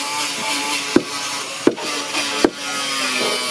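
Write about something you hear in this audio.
A wooden mallet thumps on timber a few times.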